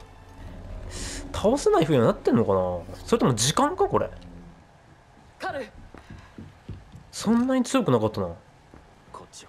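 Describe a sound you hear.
A young man speaks calmly and firmly.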